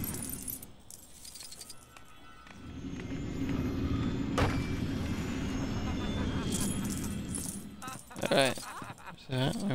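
Small coins jingle and tinkle as they are collected.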